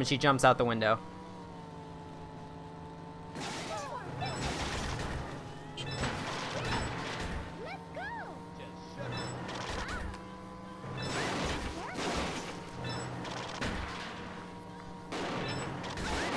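A video game car engine roars.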